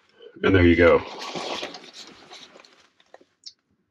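Stiff fabric rustles and crinkles as it is handled.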